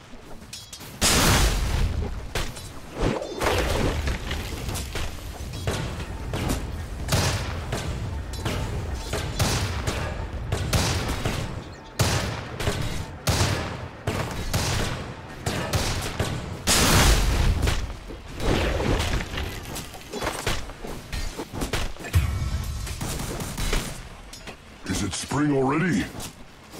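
Game spell effects and weapon impacts crash and clash in a fight.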